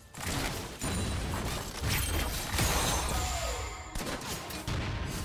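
Game spell effects whoosh and crackle in rapid bursts.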